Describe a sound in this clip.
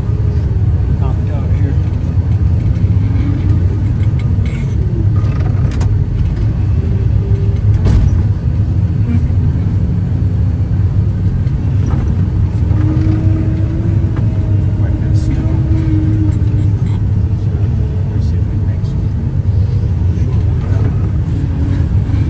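Snow sprays and hisses against a windshield.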